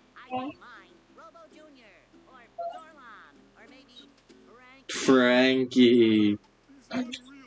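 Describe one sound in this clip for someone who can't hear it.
A young man speaks in a high, excited cartoon voice.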